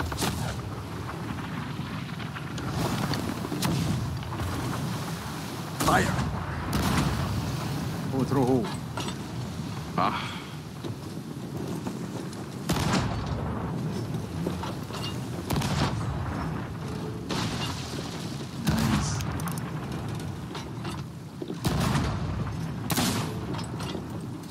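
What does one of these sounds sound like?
Waves roll and splash against a wooden ship.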